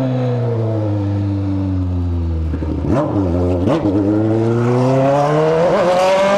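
A motorcycle engine hums close by, blips, then revs up steadily.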